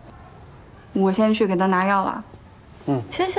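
A young woman speaks softly and weakly.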